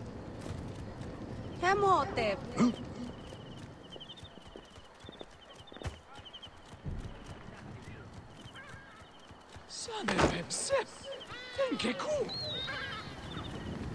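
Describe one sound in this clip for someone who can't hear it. Footsteps run quickly on stone paving.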